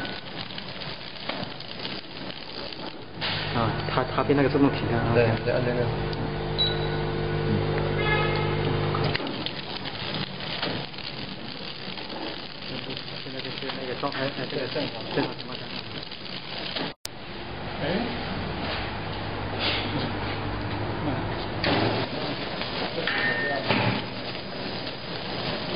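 A packaging machine hums and whirs steadily.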